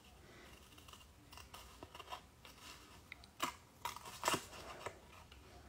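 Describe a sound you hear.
Scissors snip through a sheet of thin paper.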